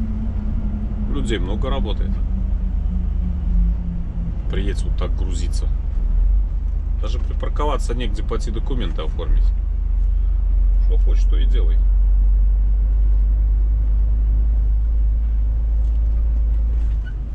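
A large vehicle's engine rumbles steadily from inside the cab.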